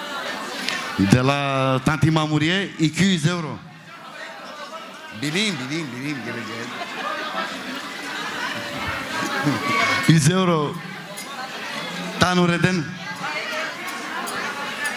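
A young man sings loudly through a microphone in a large echoing hall.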